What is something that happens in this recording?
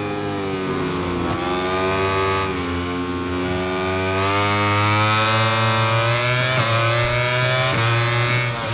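A motorcycle engine roars loudly, its pitch rising and dropping with gear shifts.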